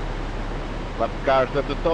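A man speaks briefly near a microphone.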